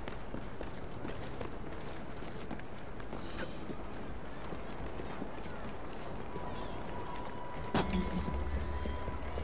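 Footsteps patter quickly across a tiled roof.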